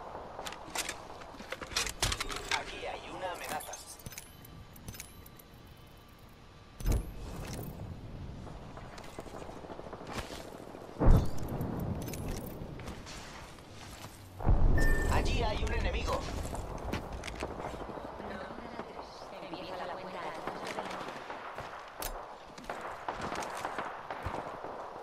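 Game sound effects click and thud as weapons are swapped.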